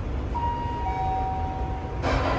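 An elevator chime rings two falling tones.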